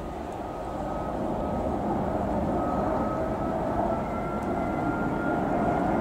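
A train's motor whines steadily.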